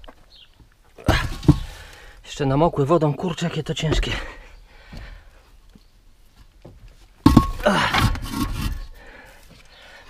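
Clay bricks knock and scrape against each other as they are stacked.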